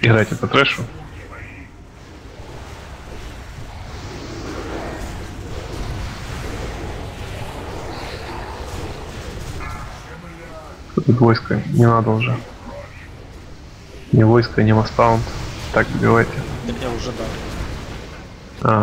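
Magic spells whoosh and crackle in a busy battle.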